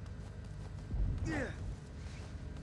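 A heavy thump lands on the floor.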